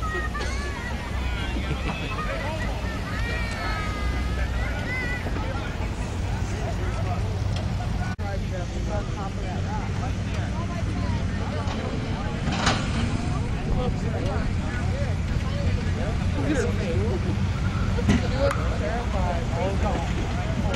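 A crowd of adults chatters outdoors in the background.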